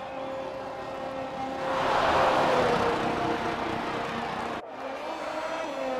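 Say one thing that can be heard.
A racing car engine whines at high pitch as the car speeds past.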